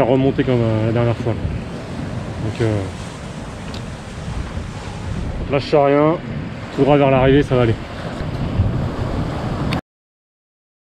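A man speaks calmly and close up, outdoors in strong wind.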